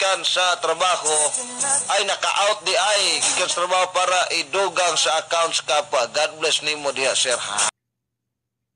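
A young man speaks animatedly into a microphone, heard as a radio broadcast.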